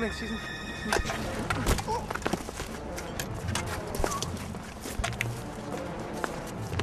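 Men scuffle and fall onto gravel.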